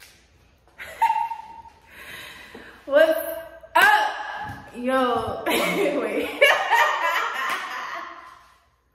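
A young woman talks close by with excitement.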